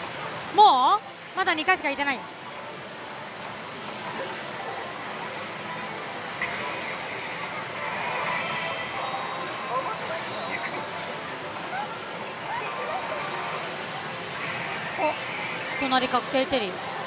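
A slot machine plays electronic jingles and music.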